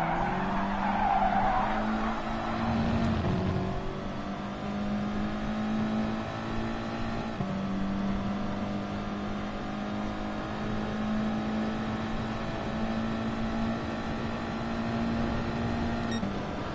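A racing car engine roars steadily at high revs, climbing in pitch and dropping at each gear change.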